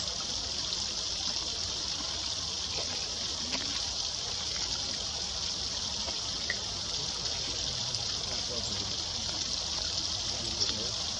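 A small bird splashes as it bathes in the water.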